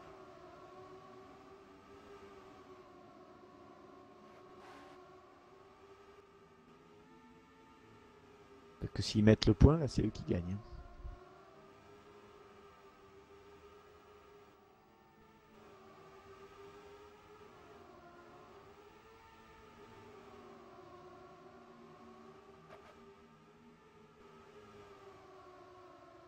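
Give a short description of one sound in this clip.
Racing car engines whine steadily, rising and falling in pitch.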